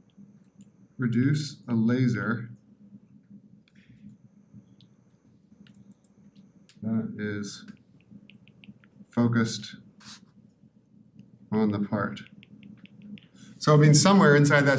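A man lectures calmly in short phrases through a microphone.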